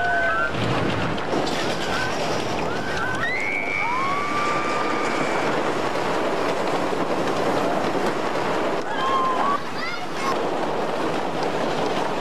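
A roller coaster roars and rattles along its track.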